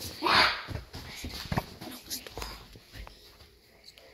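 Bare feet thud on a carpeted floor.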